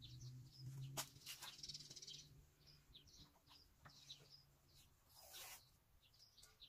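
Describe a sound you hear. Something rustles and scrapes as a person works by hand at a wall.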